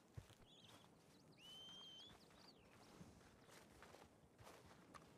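Footsteps crunch slowly on grass and dirt.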